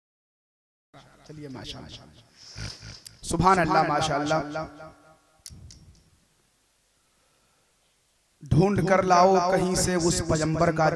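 A man chants loudly into a microphone over a loudspeaker.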